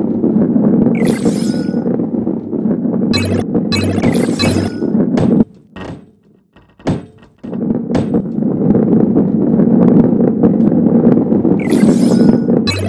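Bright chimes ring out as coins are collected.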